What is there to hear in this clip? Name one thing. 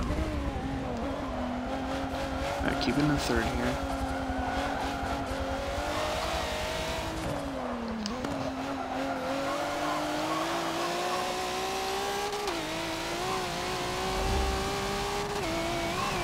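A racing car engine roars loudly, its pitch rising and falling as the car speeds up and brakes.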